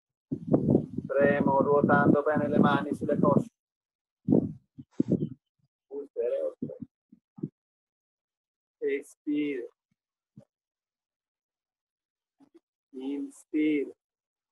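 An older man speaks and counts aloud close by, outdoors, with pauses between words.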